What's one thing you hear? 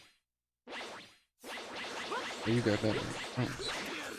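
Slashing energy beams whoosh and clash.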